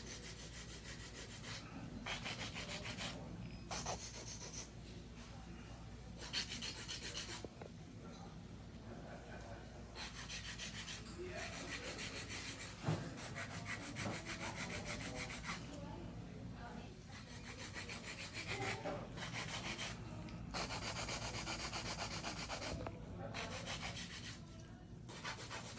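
A nail file scrapes rapidly back and forth across a fingernail.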